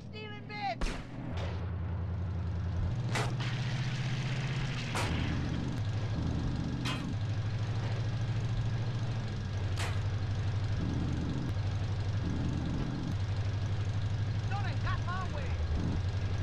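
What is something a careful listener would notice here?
A combine harvester's engine drones steadily.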